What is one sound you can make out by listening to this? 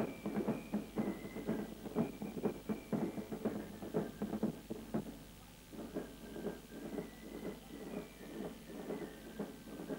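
Fifes play a shrill marching tune.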